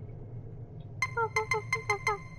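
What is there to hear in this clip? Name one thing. Keypad buttons beep quickly one after another.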